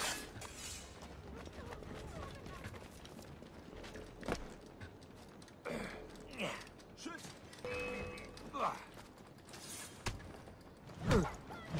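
Footsteps patter quickly over stone and roof tiles.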